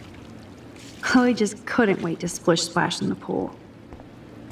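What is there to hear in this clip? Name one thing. A young woman speaks calmly and close.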